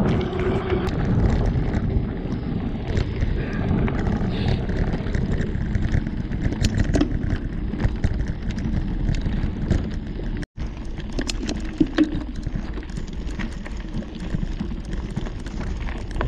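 Knobbly bicycle tyres crunch and rattle over a rough dirt track.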